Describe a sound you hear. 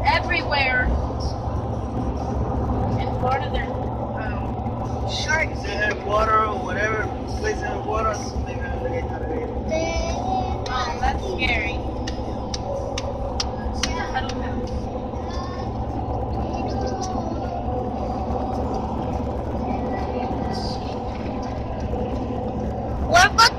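A car engine hums and tyres roar steadily on a highway, heard from inside the car.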